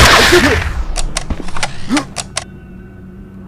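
A gun is reloaded with sharp metallic clicks.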